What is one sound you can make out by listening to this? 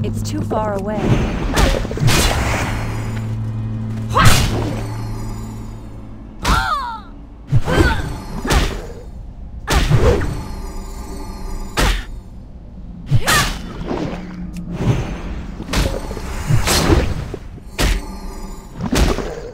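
Weapon blows strike and clang in quick repeated hits.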